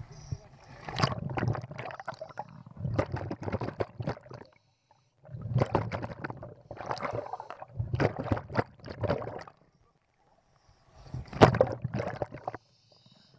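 Air bubbles rush and gurgle loudly underwater in repeated bursts.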